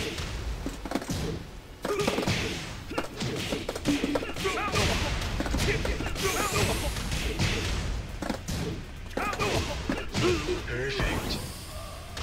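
Punches and kicks land with sharp smacks in a video game fight.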